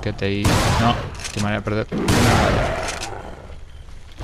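Shotgun blasts boom loudly, echoing.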